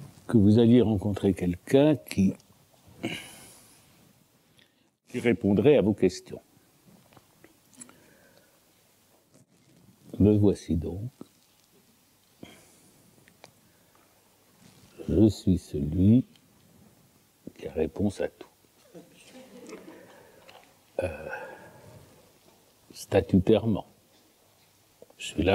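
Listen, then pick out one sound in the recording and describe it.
An elderly man speaks calmly in bursts with pauses, heard through a microphone.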